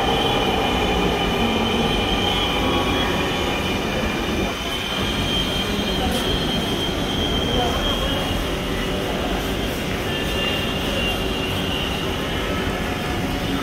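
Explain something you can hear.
A train rumbles and squeals as it pulls into a station close by.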